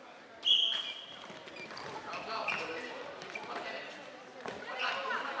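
Young boys shout and call out in a large echoing hall.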